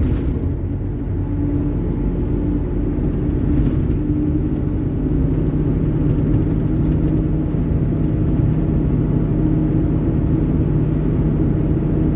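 A truck rushes past close by.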